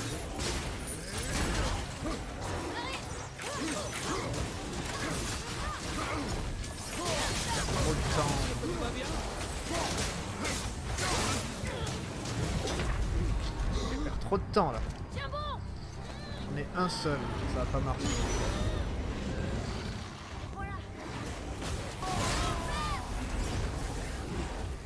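Game combat sounds of clashing blows, fiery blasts and impacts play throughout.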